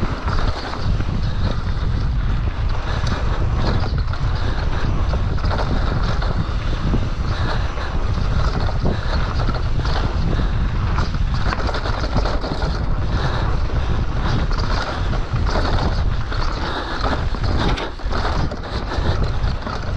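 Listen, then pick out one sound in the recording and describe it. Wind rushes hard over the microphone.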